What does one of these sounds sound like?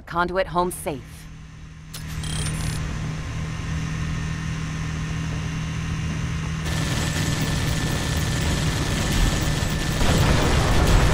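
An armoured vehicle's engine rumbles steadily.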